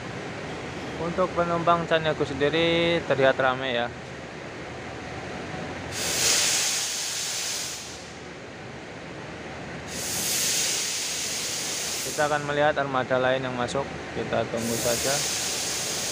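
A bus horn plays a loud musical tune.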